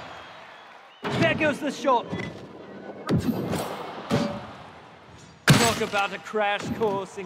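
A ball bursts with a loud impact.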